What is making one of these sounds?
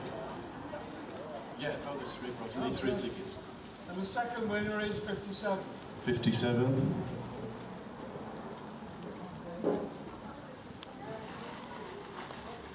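An acoustic guitar strums through loudspeakers outdoors.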